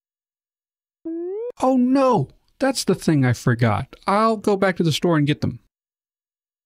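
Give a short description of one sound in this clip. A man speaks with alarm, close to a microphone.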